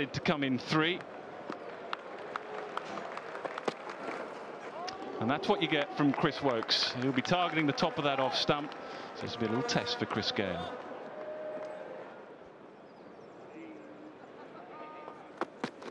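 A crowd murmurs steadily in an open stadium.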